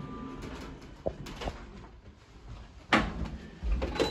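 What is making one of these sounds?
Elevator doors slide shut with a clunk.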